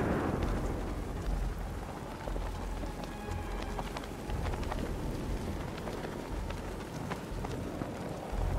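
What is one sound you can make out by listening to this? Wind rushes past steadily.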